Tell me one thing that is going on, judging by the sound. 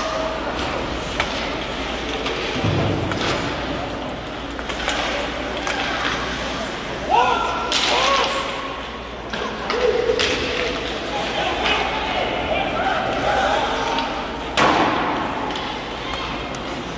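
Skates scrape and hockey sticks clack on the ice in an echoing rink.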